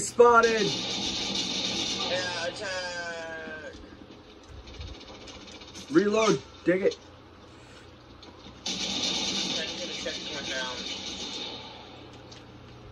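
Video game sound effects play loudly through a television speaker.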